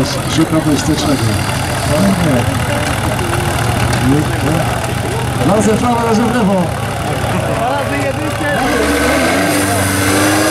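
A small tractor engine chugs and revs nearby.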